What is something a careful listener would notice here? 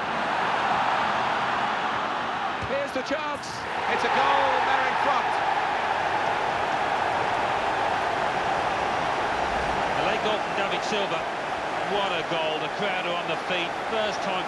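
A large stadium crowd roars steadily, swelling louder for a while.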